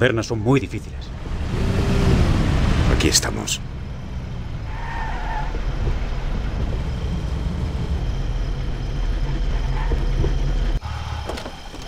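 An old car engine rumbles steadily as the car drives along.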